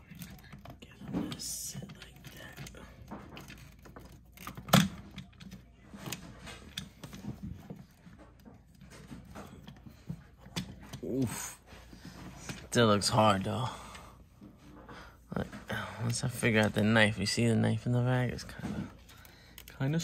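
Plastic toy parts click and rattle as hands handle them.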